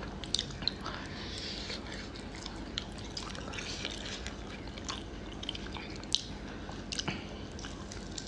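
A young man chews and smacks his lips while eating.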